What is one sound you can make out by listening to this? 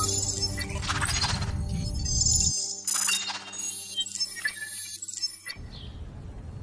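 Music plays with a pulsing beat.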